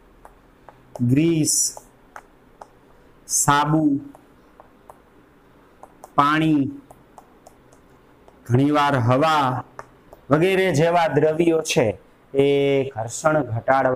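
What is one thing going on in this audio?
A man speaks clearly in a lecturing tone, close by and through a clip-on microphone.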